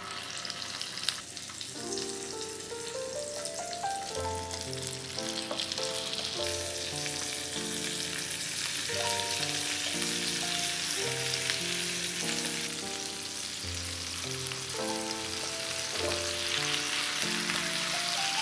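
Chicken sizzles in hot oil in a pan.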